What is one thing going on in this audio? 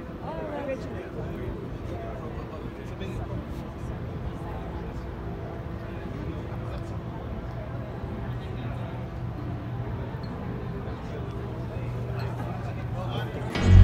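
A ship's engine hums low and steady.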